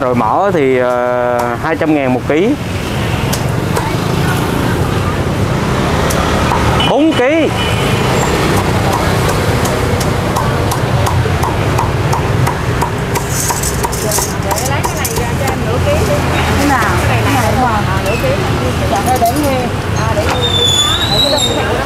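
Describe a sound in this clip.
A cleaver chops meat on a wooden block with quick, sharp thuds.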